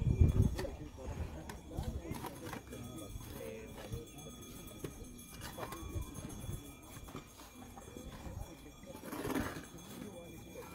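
Shovels scrape and thud into loose dirt.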